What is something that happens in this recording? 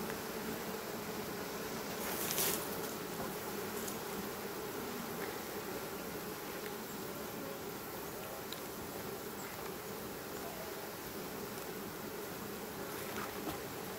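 A hive tool scrapes against wooden frames.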